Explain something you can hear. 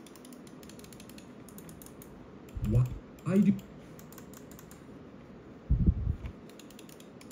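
A computer mouse clicks rapidly.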